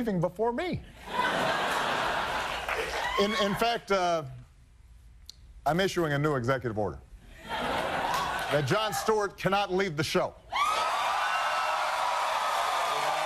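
A studio audience laughs.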